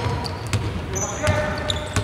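A basketball bounces on a hardwood court.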